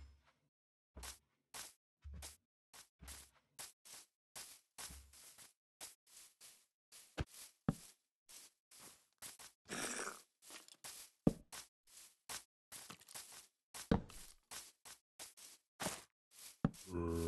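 Footsteps tread on grass at a steady walking pace.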